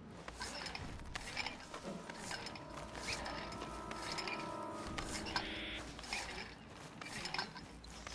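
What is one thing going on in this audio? Footsteps crunch on dirt and grass.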